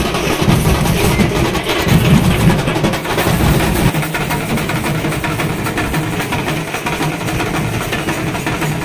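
Drums beat in a fast, pounding rhythm.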